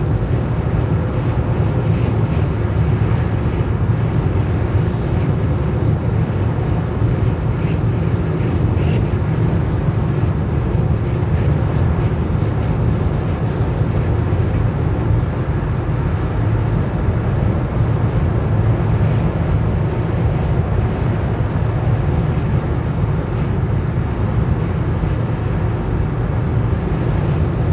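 A car engine hums steadily while driving at speed.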